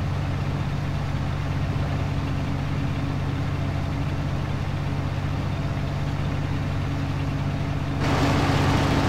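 A harvester engine drones steadily, muffled from inside the cab.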